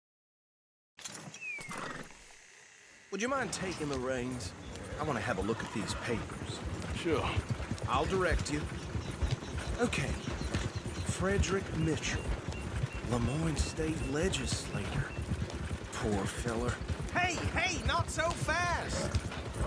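Horse hooves clop steadily on the ground.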